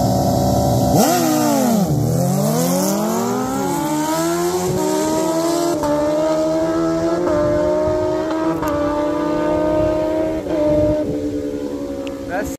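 Motorcycles race off at full throttle, their engines screaming up through the gears and fading into the distance.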